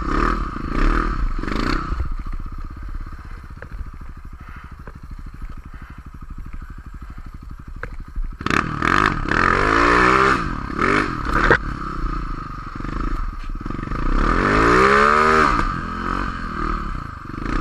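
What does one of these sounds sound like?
A snowmobile engine revs up and down loudly, close by.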